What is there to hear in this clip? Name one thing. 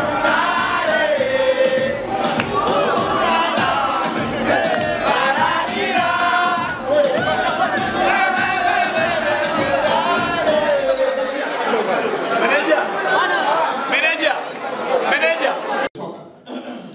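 A crowd of young people cheers and shouts excitedly close by.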